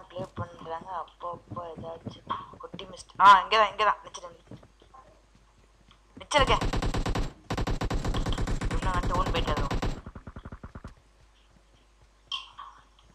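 Footsteps run quickly over ground and floors.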